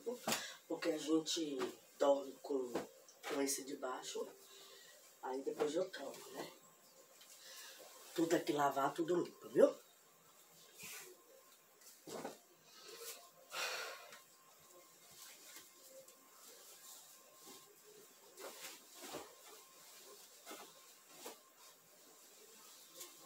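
Bedding rustles and flaps as it is shaken and folded.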